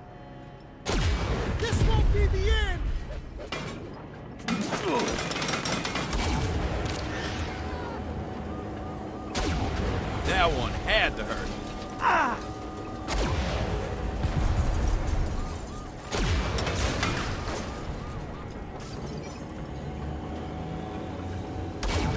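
Explosions boom loudly now and then.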